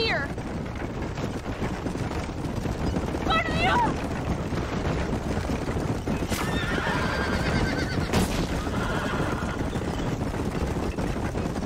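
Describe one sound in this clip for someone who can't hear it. Horse hooves clop steadily on dirt.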